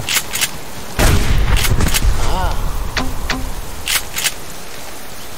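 Heavy blows thud against a bear.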